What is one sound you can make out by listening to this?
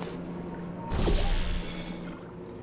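An energy blast bursts with a crackle of sparks.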